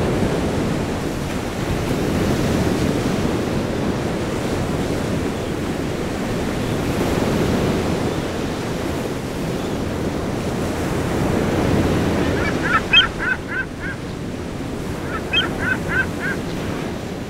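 Waves break and wash in with a steady rushing roar.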